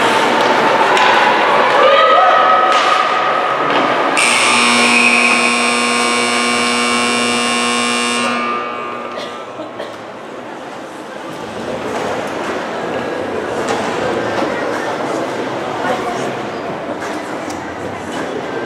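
Skates scrape and hiss across ice in a large echoing rink.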